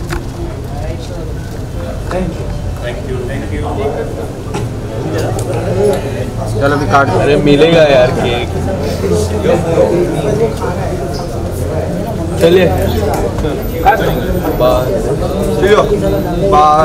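Men and women chatter and talk around a small gathering.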